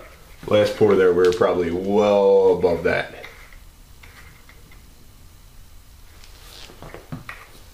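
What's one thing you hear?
A small plastic bottle crinkles as it is squeezed.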